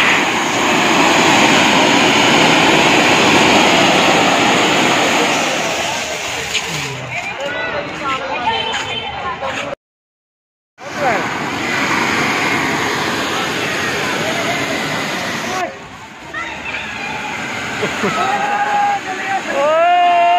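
Fireworks fountains hiss and crackle loudly as they spray sparks.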